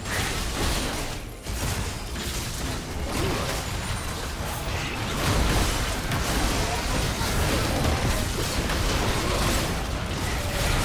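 Game weapons clash and strike repeatedly.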